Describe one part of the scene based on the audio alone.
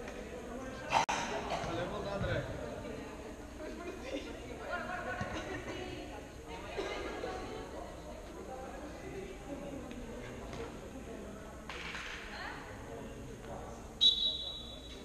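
A ball is kicked with a sharp thump.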